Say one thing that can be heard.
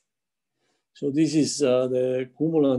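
A middle-aged man speaks calmly into a microphone, heard through an online call.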